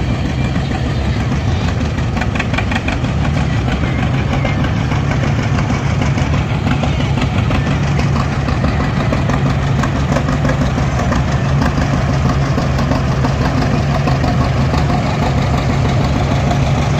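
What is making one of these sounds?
Old tractor engines chug and putt steadily close by.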